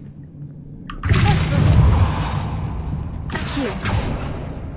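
A magic spell whooshes and crackles loudly.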